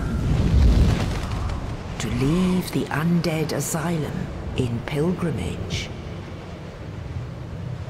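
A large bird's wings beat heavily as it takes off and flies away.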